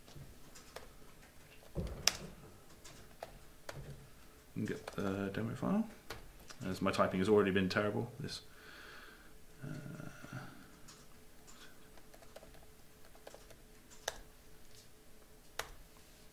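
Keys click on a computer keyboard.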